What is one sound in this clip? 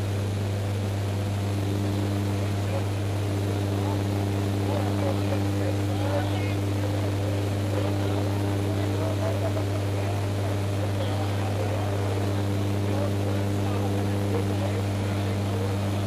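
An aircraft engine drones loudly and steadily inside a cabin.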